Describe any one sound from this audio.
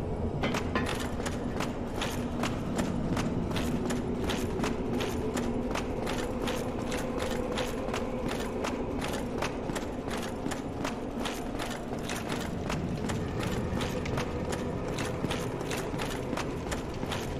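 Armored footsteps clank quickly on stone.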